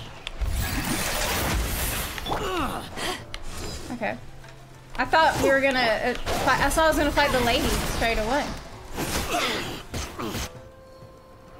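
Swords clash and magic blasts crackle in a fast fight.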